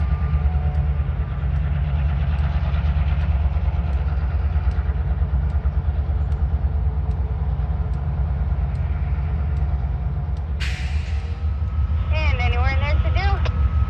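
A diesel train rumbles past at a distance.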